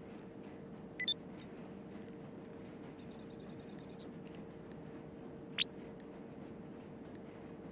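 Short electronic menu clicks and chimes sound.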